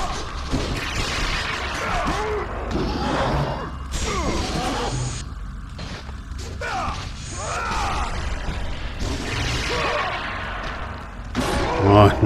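Metal blades whoosh and slash through the air.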